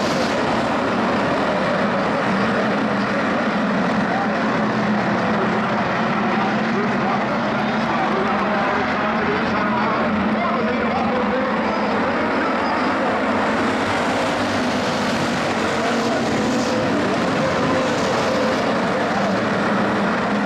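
Many race car engines roar loudly as they speed around a track.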